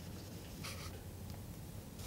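A fountain pen scratches across paper.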